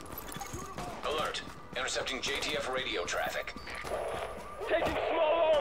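Gunshots crack in bursts.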